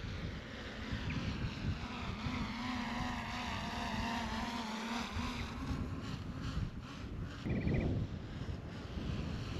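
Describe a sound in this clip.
Wind rumbles and buffets outdoors.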